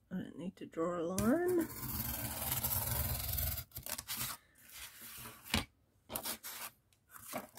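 A craft knife scrapes and cuts through cardboard.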